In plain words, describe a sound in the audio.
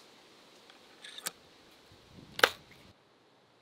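Shells click into a shotgun.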